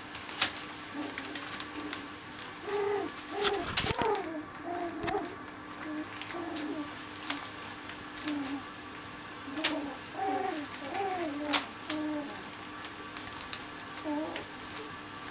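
Puppies whimper and squeal.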